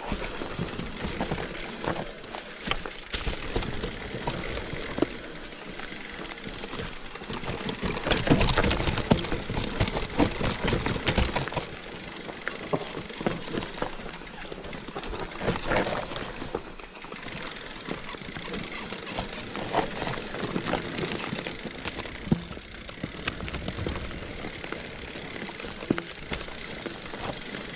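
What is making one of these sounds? A bicycle frame rattles and clatters over rocks and roots.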